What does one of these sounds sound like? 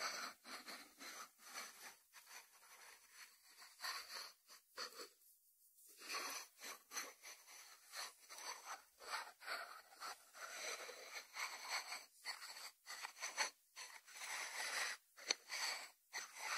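A ceramic dish slides across a wooden board.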